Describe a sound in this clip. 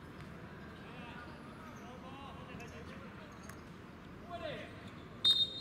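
Young men call out and shout across the court outdoors.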